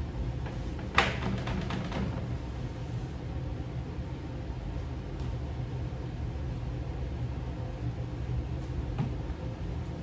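A spray bottle sprays with short hisses.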